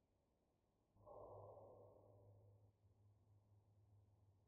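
A medical scanner hums softly.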